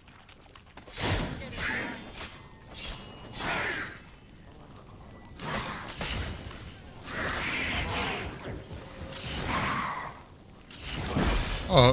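Swords slash and strike in a fight.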